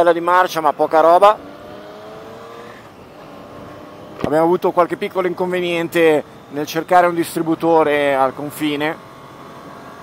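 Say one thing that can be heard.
A motorcycle engine revs hard, rising and dropping in pitch with each gear change.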